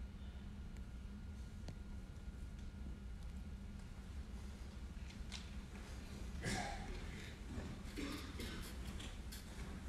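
A grand piano plays softly in a hall.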